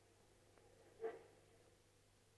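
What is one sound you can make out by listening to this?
A bicycle bell rings once.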